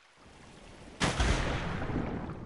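Water splashes loudly as someone plunges in.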